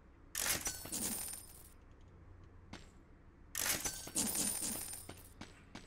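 Icy magic blasts burst with sharp whooshes.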